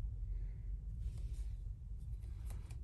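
Paper rustles and slides as a card is handled.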